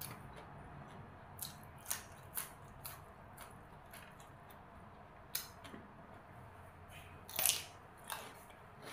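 A woman crunches loudly on crisp raw greens close to a microphone.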